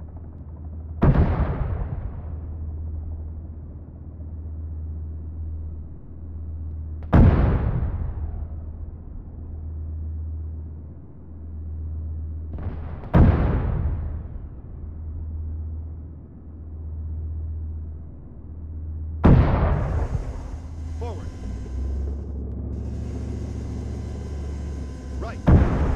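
A heavy cannon fires loud booming shots that echo away.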